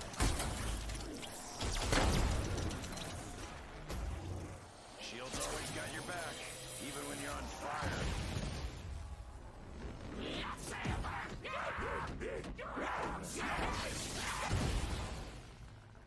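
Energy weapon blasts fire in rapid bursts.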